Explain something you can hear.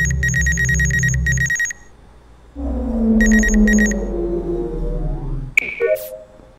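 Electronic beeps and a falling hum sound from a scanning machine.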